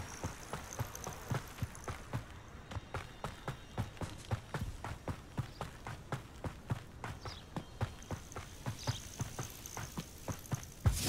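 Quick footsteps run steadily on a dirt path.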